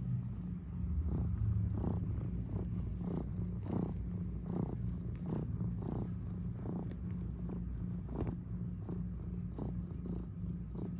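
A cat purrs loudly and steadily, very close.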